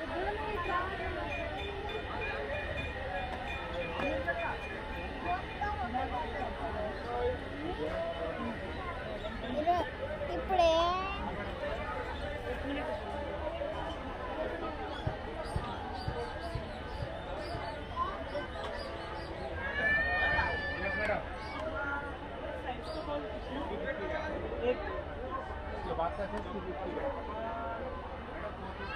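Many people chatter all around.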